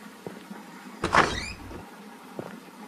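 A door opens with a creak.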